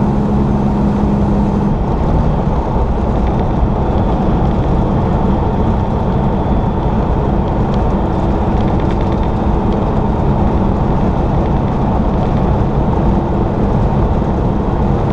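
Wind rushes past the vehicle.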